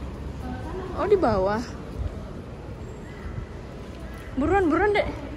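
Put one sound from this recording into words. A woman calls out in a sing-song voice nearby, echoing in a large hall.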